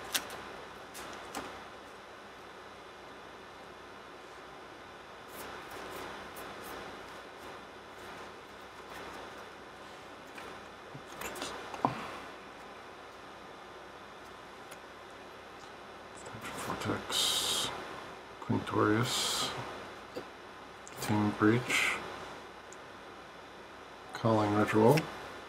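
Playing cards shuffle and slide against each other.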